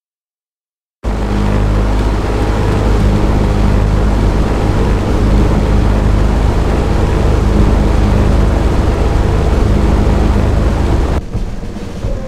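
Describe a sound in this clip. Propeller plane engines drone loudly and steadily.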